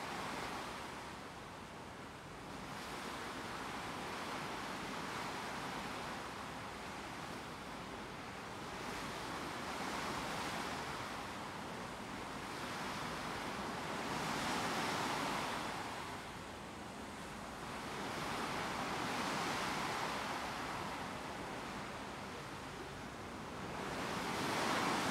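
Water rushes and splashes steadily against a moving ship's bow.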